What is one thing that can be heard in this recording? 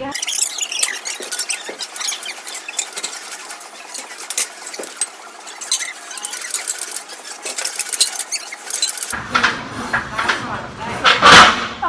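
A weight machine's sled clanks as it moves up and down.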